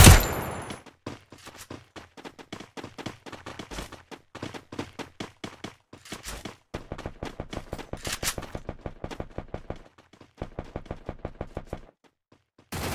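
Running footsteps thud on a wooden floor.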